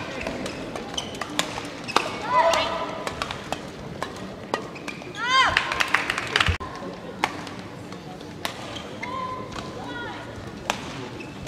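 A shuttlecock is struck sharply back and forth with rackets.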